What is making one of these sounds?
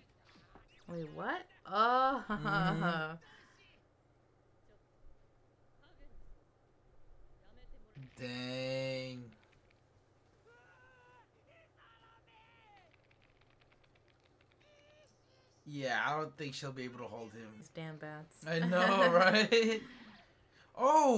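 A young woman talks and laughs close to a microphone.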